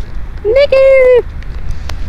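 A horse walks on grass, its hooves thudding softly.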